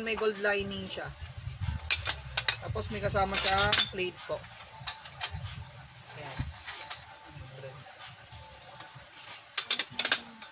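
Ceramic plates and cups clink and clatter against each other.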